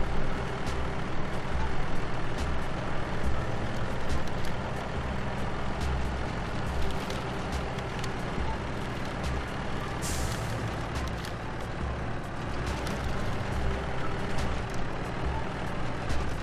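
Branches snap and scrape against a truck as it pushes through trees.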